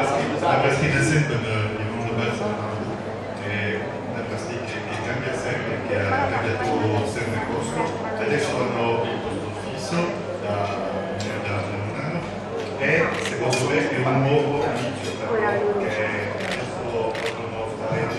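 A man speaks with animation through a microphone and loudspeakers in an echoing room.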